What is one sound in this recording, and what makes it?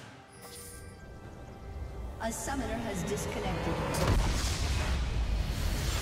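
Game spells and attacks crackle and clash.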